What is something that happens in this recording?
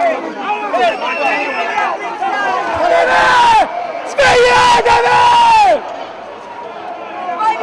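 A crowd of protesters shouts and chants loudly outdoors.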